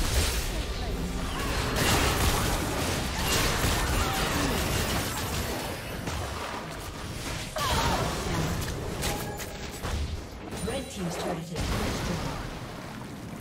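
Magic spells burst and crackle in a fast video game battle.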